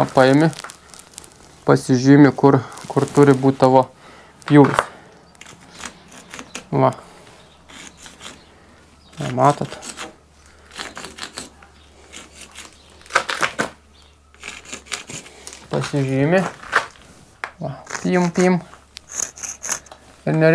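A pencil scratches lines on brick.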